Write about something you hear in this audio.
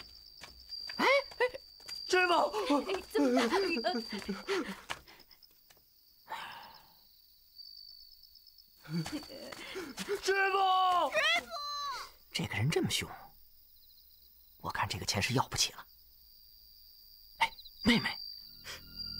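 A young man speaks with worry, close by.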